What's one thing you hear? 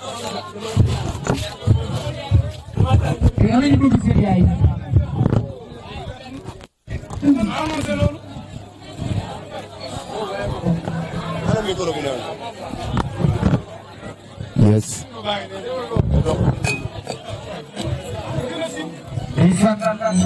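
Live band music plays loudly with a heavy beat.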